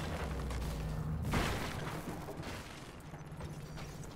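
Metal weapons clash and clang in a fight.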